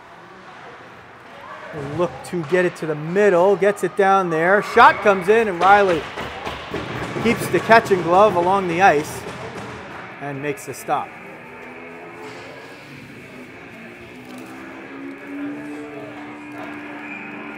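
Ice skates scrape and carve across ice in a large echoing hall.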